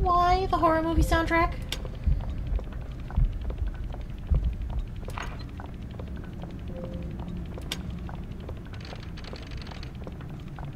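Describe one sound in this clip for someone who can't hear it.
Brass gears turn with a soft mechanical whir.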